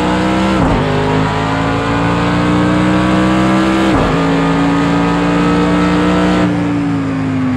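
A racing car engine roars at high revs, dropping sharply with each gear shift.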